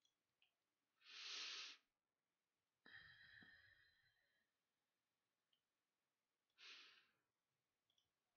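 A soft whooshing sound effect plays.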